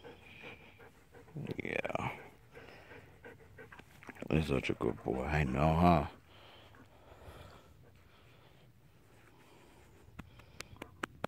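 A hand strokes a dog's fur softly.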